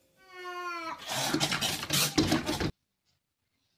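A cat scrabbles and thumps against a glass pane.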